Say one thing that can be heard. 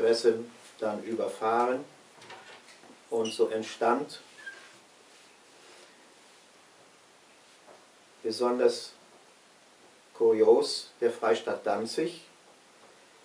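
An elderly man speaks calmly and close by, in short bursts with pauses.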